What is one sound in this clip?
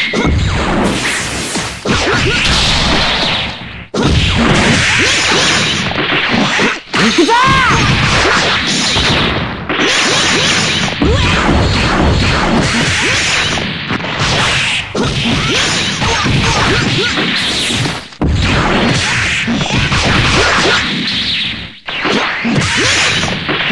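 Punches and kicks land with sharp, rapid impacts.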